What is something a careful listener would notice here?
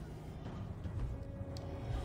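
A soft magical whoosh bursts briefly.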